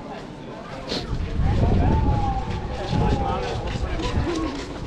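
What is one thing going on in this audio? A group of men walks closer, their voices growing louder.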